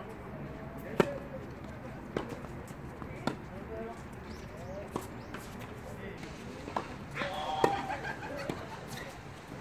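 Tennis rackets strike a ball in a rally outdoors.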